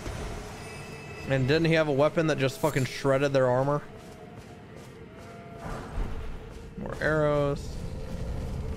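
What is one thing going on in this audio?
Footsteps thud on grass in a steady run.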